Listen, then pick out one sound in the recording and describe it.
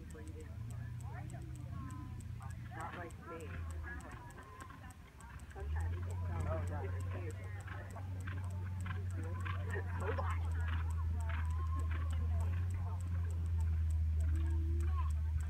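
A horse trots with soft hoof thuds on sand.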